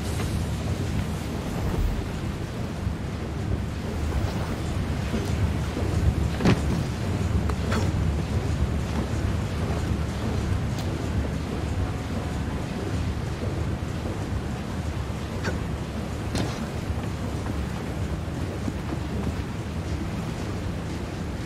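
Water laps and splashes steadily against boats.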